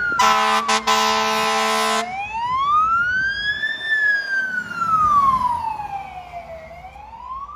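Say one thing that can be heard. An engine rumbles as a truck drives past.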